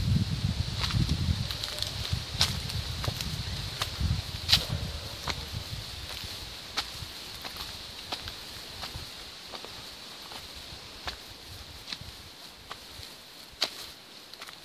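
Footsteps crunch on dry leaves and gravel along a trail.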